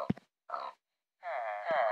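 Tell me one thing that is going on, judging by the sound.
A pig grunts.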